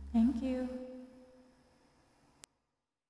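A woman sings a long held note close to the microphone, slowly fading away.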